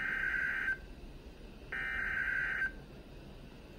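A weather radio sounds two loud electronic beeps.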